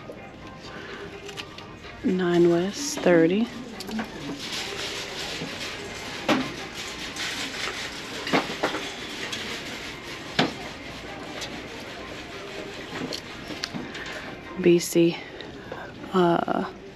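Sandals knock and rustle softly against a shelf as they are picked up and put back.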